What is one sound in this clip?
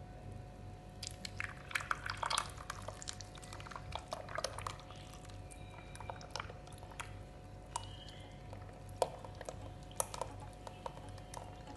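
Thick liquid pours and splashes into a metal bowl.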